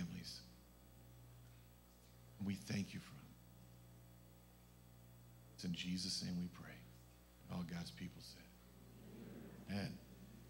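A man prays aloud through a microphone in a large echoing hall, in short bursts.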